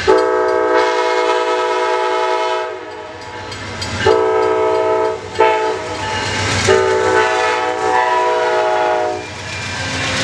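A diesel passenger locomotive sounds its horn.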